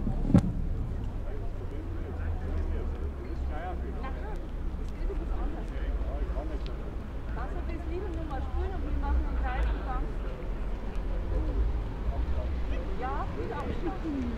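Voices murmur at a distance outdoors.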